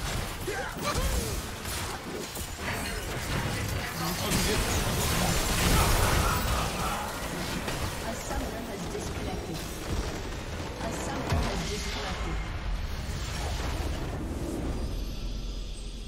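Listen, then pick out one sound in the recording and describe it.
Magic spells blast and crackle in a busy fight.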